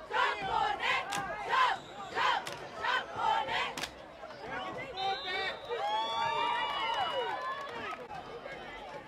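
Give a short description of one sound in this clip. Young women chant loudly in unison.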